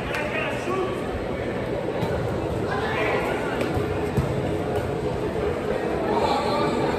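Young men shout and call out to each other across an echoing indoor pitch.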